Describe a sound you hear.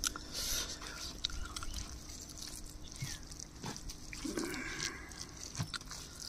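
A man mixes rice and gravy squelchily with his fingers.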